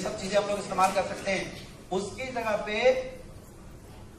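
A man speaks with animation through a loudspeaker in a large hall.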